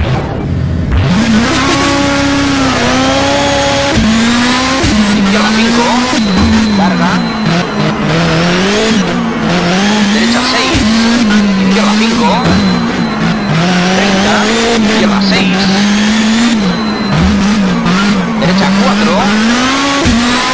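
A rally car engine roars and rises and falls in pitch as the car speeds up and changes gear.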